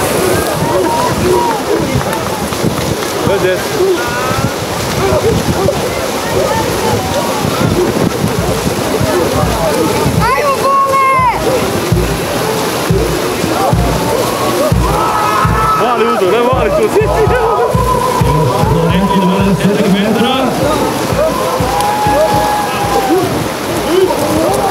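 Men shout and call out outdoors.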